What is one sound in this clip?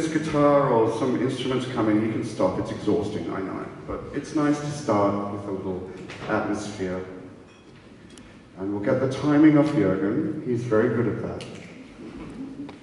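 A man speaks with animation into a microphone over loudspeakers in an echoing hall.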